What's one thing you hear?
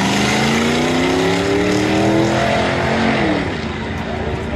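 Car engines roar and rise in pitch as the cars speed away.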